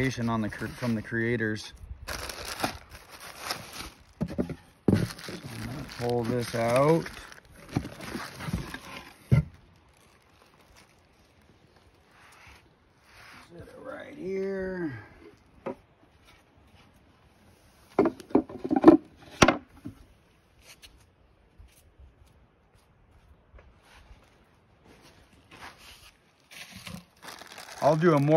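Bubble wrap rustles and crinkles.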